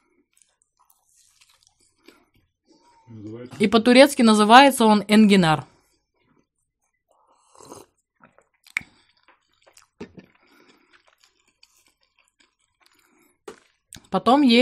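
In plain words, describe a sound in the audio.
Crispy fried pastry crunches as a young woman chews.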